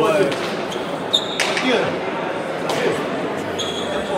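A ball smacks hard against a wall and echoes.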